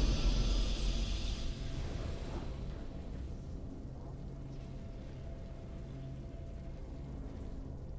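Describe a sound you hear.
Triumphant game music swells and then fades to a low, steady hum.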